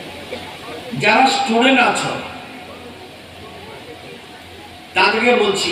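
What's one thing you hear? A man speaks loudly and formally through a microphone and loudspeakers outdoors.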